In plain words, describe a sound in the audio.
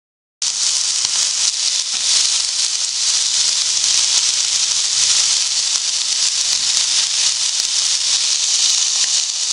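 A fork scrapes and taps against a pan.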